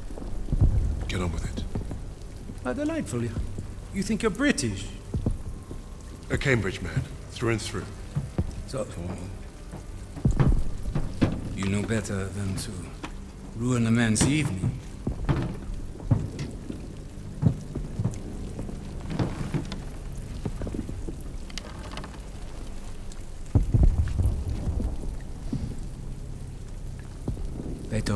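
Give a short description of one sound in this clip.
Rain pours steadily outside.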